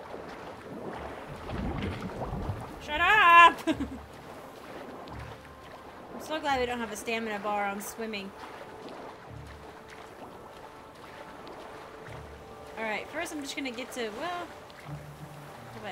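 Water splashes as a swimmer strokes through waves.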